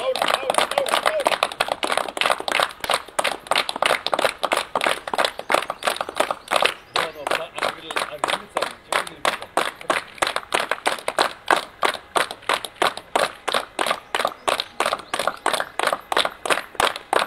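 A group of people clap their hands in a steady rhythm.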